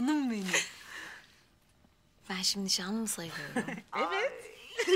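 A woman speaks warmly and close by.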